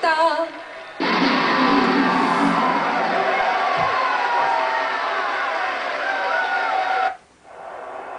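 A crowd cheers and roars loudly through a television speaker.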